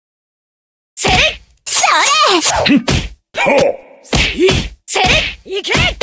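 Fighting sound effects clash and whoosh rapidly.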